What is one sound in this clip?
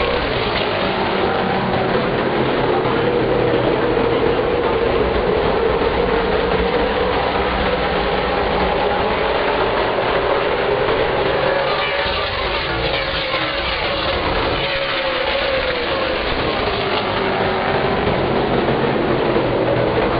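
Race car engines roar loudly as the cars speed around the track.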